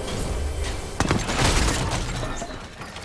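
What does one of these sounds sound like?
A sharp burst rings out, followed by a shimmering crackle.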